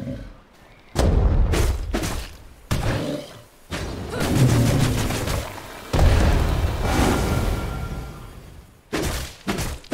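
A bear growls and roars during a fight.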